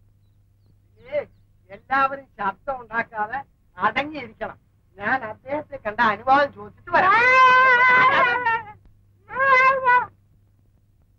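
A man speaks with animation, close by.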